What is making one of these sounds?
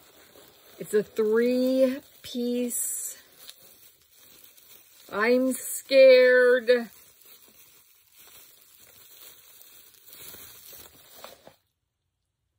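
Plastic bubble wrap crinkles and rustles in hands.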